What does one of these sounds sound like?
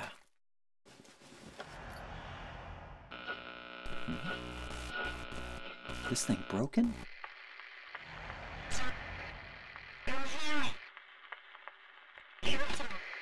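A portable radio crackles and hisses with static.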